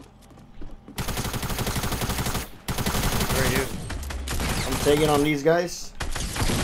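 A shotgun fires loud blasts in quick succession.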